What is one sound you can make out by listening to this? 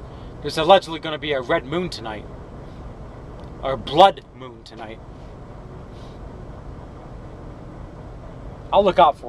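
A man speaks calmly nearby, in short bursts with pauses.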